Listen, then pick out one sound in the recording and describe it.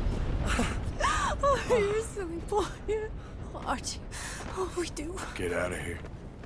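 A middle-aged woman speaks tenderly, close by.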